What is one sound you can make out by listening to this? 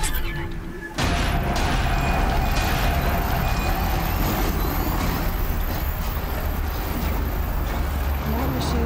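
Electric bolts crackle and boom loudly.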